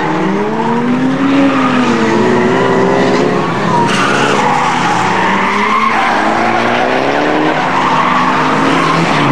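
Tyres screech on the track.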